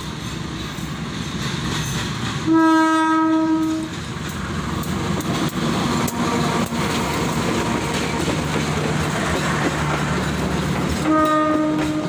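A diesel-electric locomotive's engine roars as it passes close.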